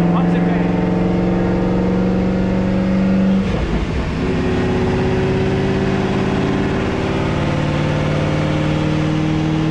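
A car engine idles loudly with a steady hum.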